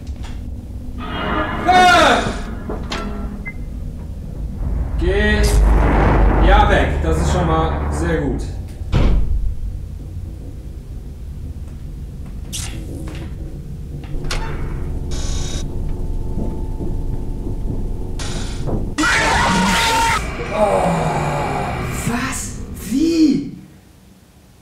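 A young man talks and exclaims loudly into a close microphone.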